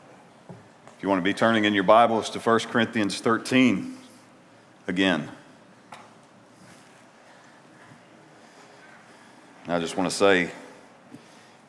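A middle-aged man speaks calmly into a microphone in an echoing hall.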